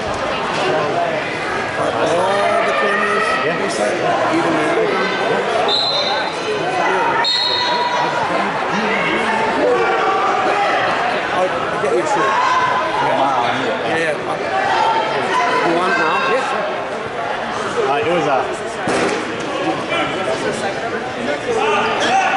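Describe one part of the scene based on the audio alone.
Many men and women chatter all around in a large echoing gym.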